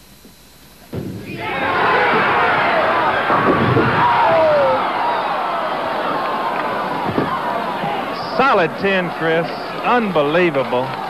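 A crowd cheers and roars loudly in a large hall.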